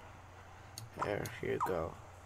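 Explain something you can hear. A cartoon character makes a short sing-song call.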